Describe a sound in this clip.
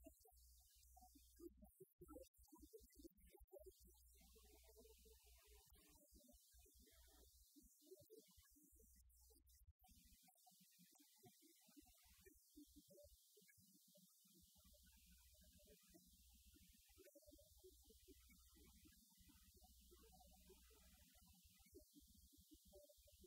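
A group of singers sings into microphones.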